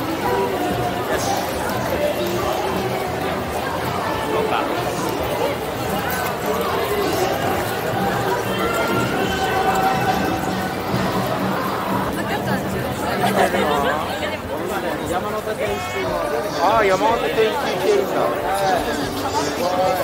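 A busy street crowd chatters outdoors.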